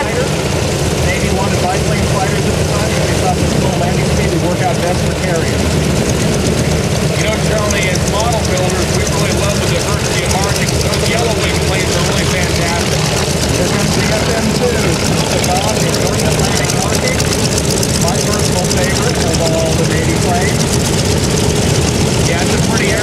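A piston aircraft engine idles close by with a loud, rough, steady roar.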